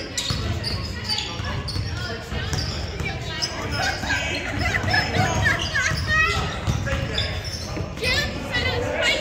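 A basketball bounces with dull thumps.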